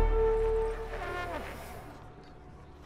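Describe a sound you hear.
A horn blares loudly, then fades.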